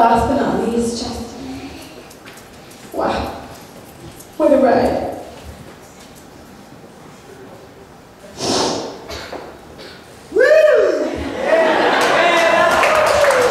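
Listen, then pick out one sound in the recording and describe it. A woman speaks through a microphone in an echoing hall, with pauses.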